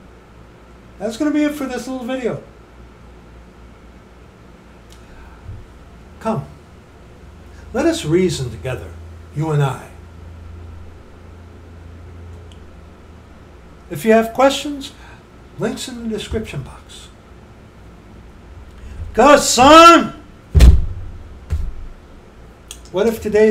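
A middle-aged man speaks close to a microphone, with pauses.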